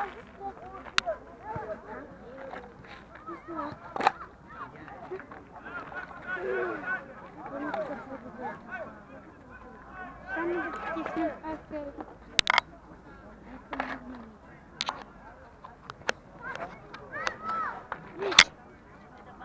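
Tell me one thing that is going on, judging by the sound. Hockey balls are struck with sticks at a distance, with sharp clacks.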